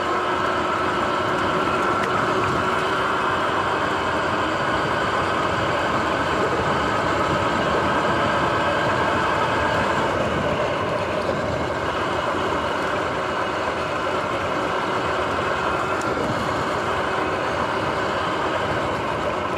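Tyres roll on a dirt path.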